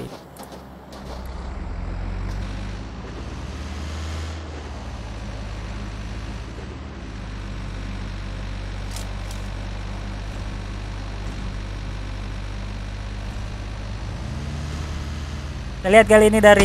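A van engine drones steadily as it drives.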